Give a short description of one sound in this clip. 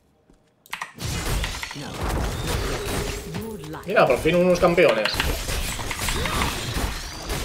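Game spell effects crackle and boom.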